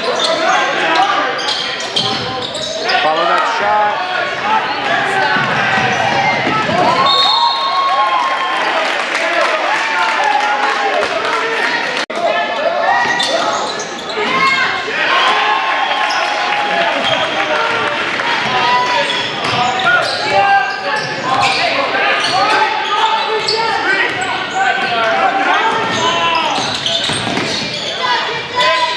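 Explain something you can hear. A crowd chatters and cheers loudly in a large echoing gym.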